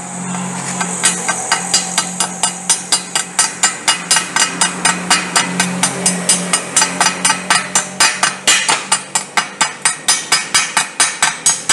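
A chipping hammer taps rapidly and steadily on a metal weld, ringing sharply.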